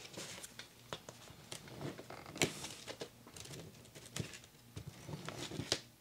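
A knife scrapes across a cracker on a paper plate.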